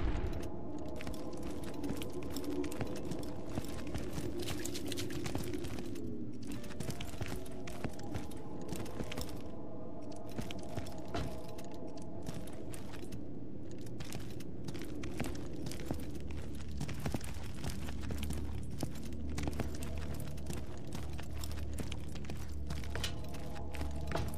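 Guns fire in sharp, scattered shots.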